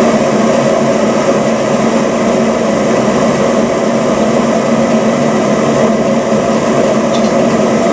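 An electric kettle rumbles steadily as its water heats.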